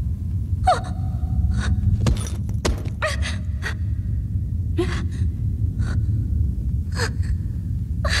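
Footsteps tread down wooden stairs.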